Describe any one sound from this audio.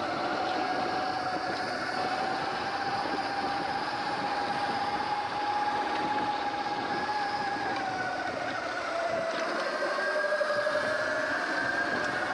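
An electric motor whines steadily, rising and falling in pitch.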